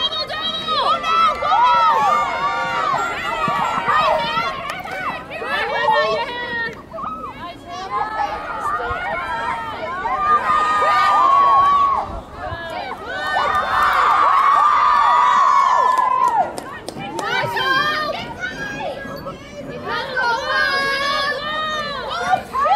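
Young women shout and call to each other across an open playing field.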